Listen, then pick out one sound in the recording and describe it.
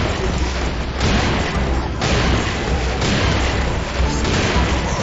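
A heavy multi-barrelled gun fires in a rapid, continuous roar.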